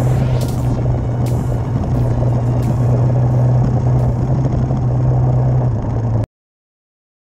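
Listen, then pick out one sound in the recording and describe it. Tyres crunch over a rough gravel track.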